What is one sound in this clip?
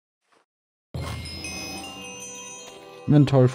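Game music plays.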